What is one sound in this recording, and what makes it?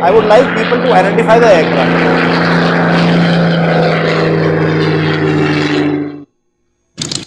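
A propeller plane's piston engine roars loudly as it flies close overhead.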